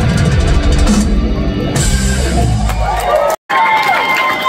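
A rock band plays loudly with heavy drums and bass.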